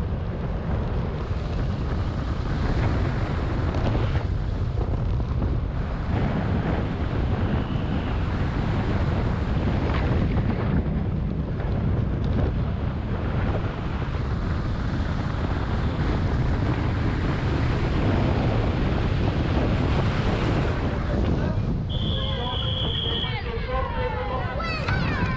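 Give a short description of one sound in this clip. Tyres roll and rumble over tarmac.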